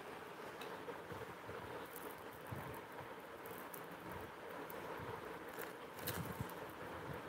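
Metal jewellery jingles and clinks softly in handling.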